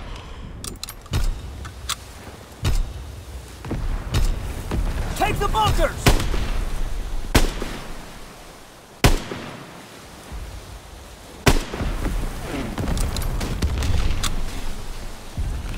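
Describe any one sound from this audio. Waves crash and churn nearby.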